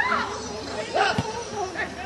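A football is kicked with a dull thud.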